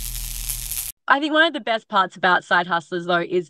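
A young woman speaks cheerfully and with animation, close to a microphone.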